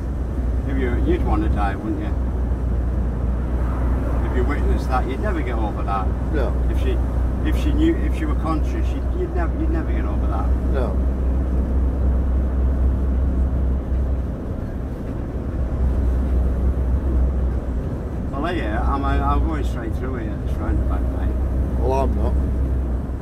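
An older man talks calmly and close by.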